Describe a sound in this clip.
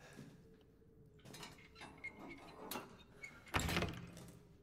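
A metal lock clicks open.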